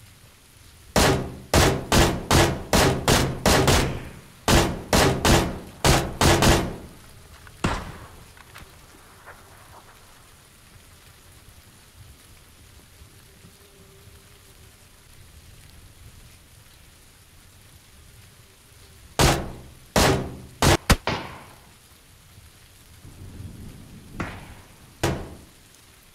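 A rifle fires a rapid series of loud single shots.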